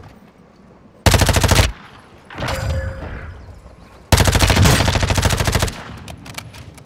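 A rifle fires rapid bursts up close.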